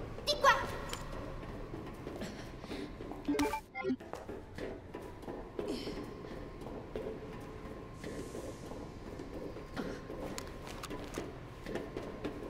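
Footsteps clatter on a metal walkway.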